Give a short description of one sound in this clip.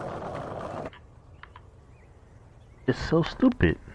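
A skateboard clacks as it lands on hard ground.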